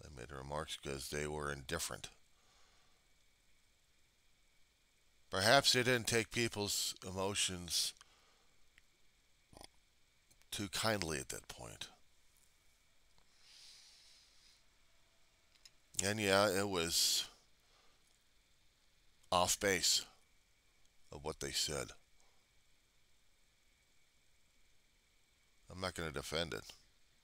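A middle-aged man speaks calmly into a headset microphone, in short bursts with pauses.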